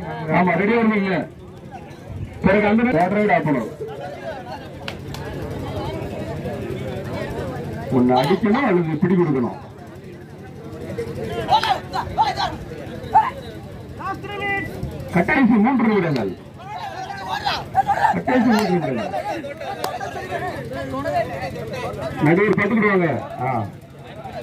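A crowd chatters and cheers outdoors.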